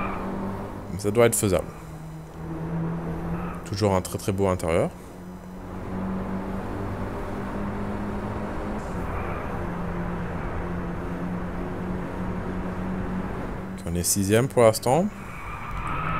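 A racing car engine revs sharply up and down with gear changes.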